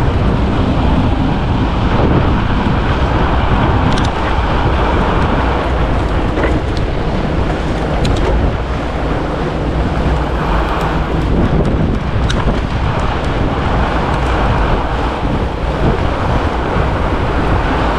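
Fat bike tyres crunch over packed snow.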